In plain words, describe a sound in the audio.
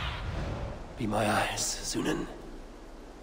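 A raven caws loudly.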